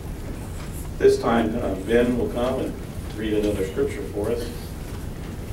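A middle-aged man speaks calmly into a microphone in a room with some echo.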